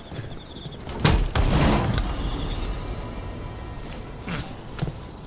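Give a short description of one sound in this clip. A bright magical chime rings and shimmers.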